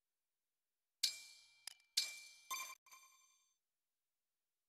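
Bright menu chimes ring out in quick succession and fade.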